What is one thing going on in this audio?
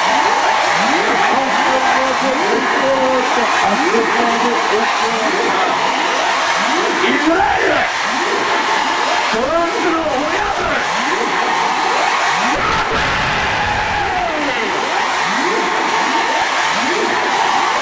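A man raps into a microphone, heard loud through loudspeakers.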